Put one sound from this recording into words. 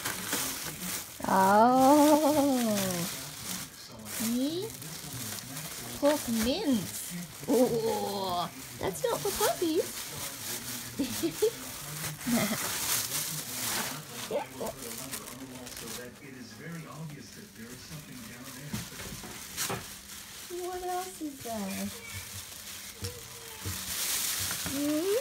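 A plastic bag rustles and crinkles as a dog noses through it.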